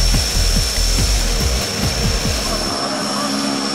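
A propeller plane's engine rumbles loudly nearby.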